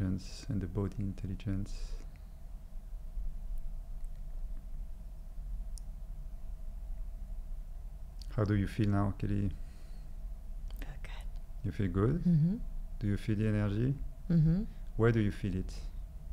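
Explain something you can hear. A man speaks calmly and close into a microphone, with pauses.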